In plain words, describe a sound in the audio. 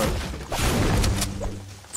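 A pickaxe swings and strikes with a loud thud.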